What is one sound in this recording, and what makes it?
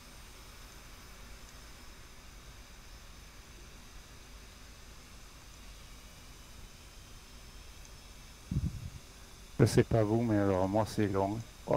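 A jet engine idles with a faint, steady hum.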